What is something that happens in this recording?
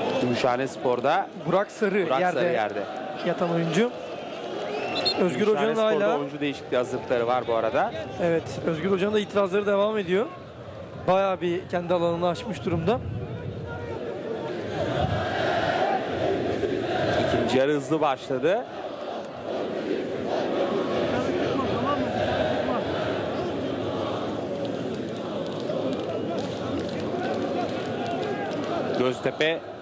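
A large crowd murmurs in an open-air stadium.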